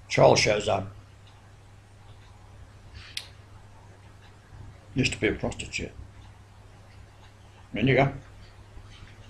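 An elderly man speaks calmly in short bursts, close to the microphone.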